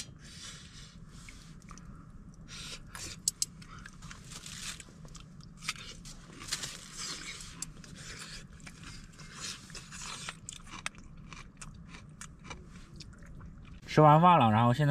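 A young man slurps and chews food close by.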